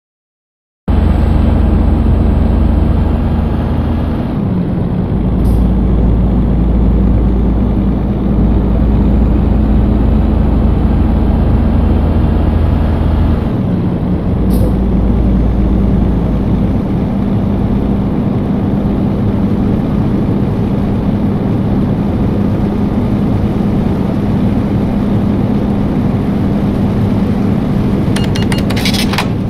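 Tyres roll on a road with a steady rushing noise.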